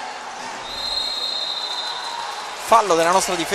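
A referee's whistle blows one long, steady blast.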